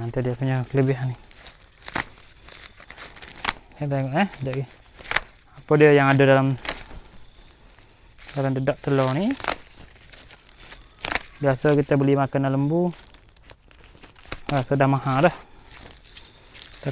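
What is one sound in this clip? A plastic sack rustles and crinkles as it is handled.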